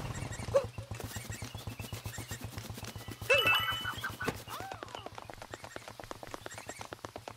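Quick footsteps patter rapidly on grass.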